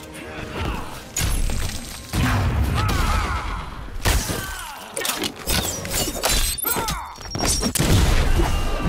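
Heavy blows and whooshing strikes land in quick bursts.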